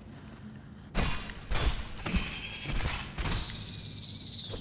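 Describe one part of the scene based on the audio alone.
Blade strikes hit a large spider with sharp, quick impacts.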